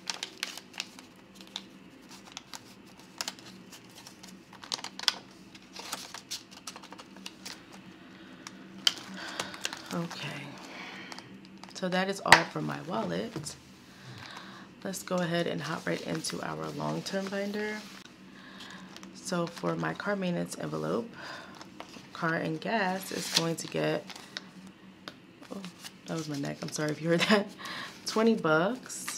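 Paper bills rustle and crinkle in hands.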